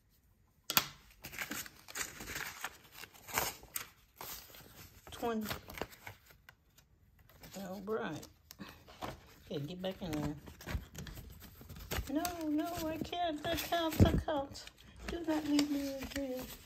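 Paper bills rustle and crinkle as they are handled.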